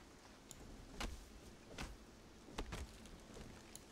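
Leafy plants rustle and snap as they are picked.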